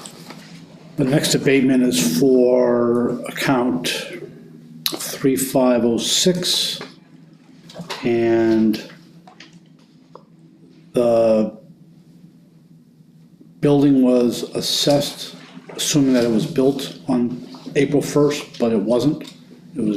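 A man speaks calmly in a small room.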